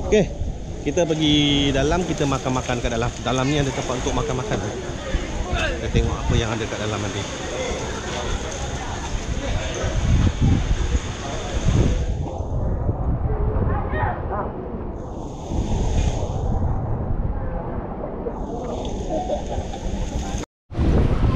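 Men chat nearby in a lively voice.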